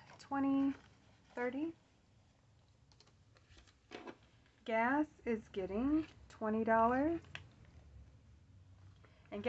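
Paper banknotes rustle and crinkle as hands handle them.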